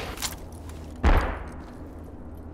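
A rifle rattles as it is raised to aim.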